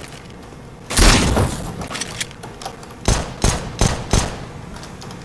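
Gunshots ring out sharply, a few at a time.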